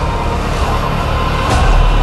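An angle grinder screeches against metal.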